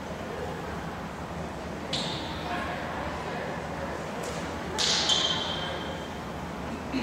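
Young girls call out to each other in a large echoing gym.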